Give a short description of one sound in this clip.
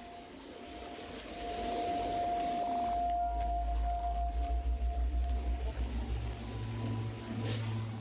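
Small footsteps patter over stone and grass.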